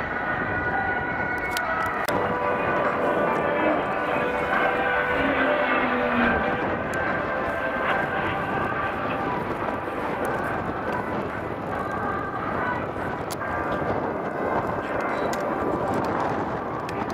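A propeller plane's engine roars overhead, its pitch rising and falling as it turns.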